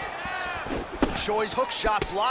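A punch thuds against a fighter's body.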